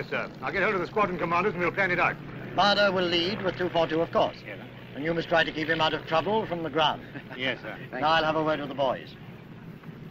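A middle-aged man speaks calmly and firmly.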